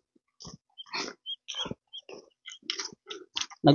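Footsteps crunch on loose gravel.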